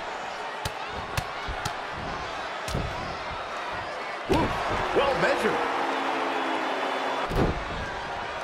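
Bodies thud hard onto a wrestling mat.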